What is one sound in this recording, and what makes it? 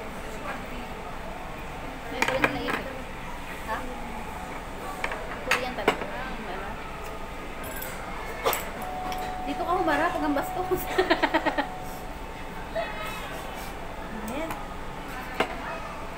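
Young women talk casually close by.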